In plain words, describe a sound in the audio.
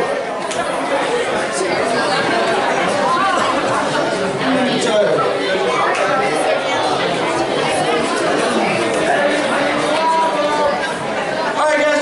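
An audience chatters and murmurs.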